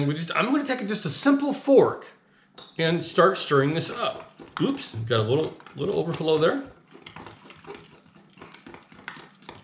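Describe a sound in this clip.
A fork clinks against a glass cup while stirring.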